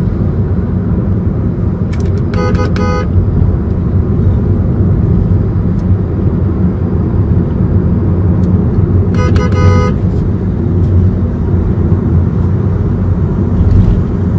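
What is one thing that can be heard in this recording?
A heavy truck engine rumbles steadily close ahead.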